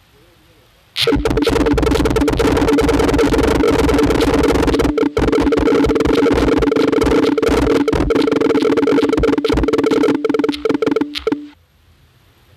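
Many small balls clatter and patter rapidly.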